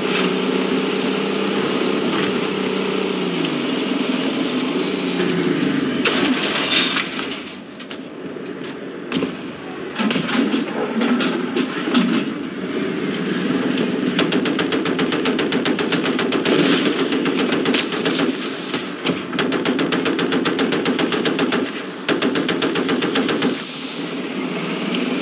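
A tank engine rumbles and whines steadily.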